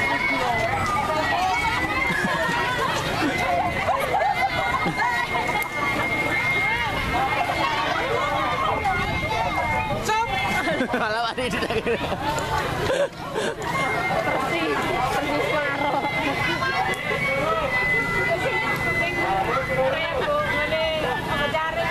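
A large outdoor crowd of children and adults chatters and calls out.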